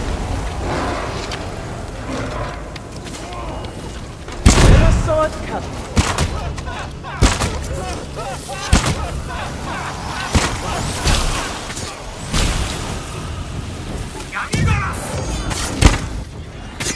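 Explosions boom with sharp bangs.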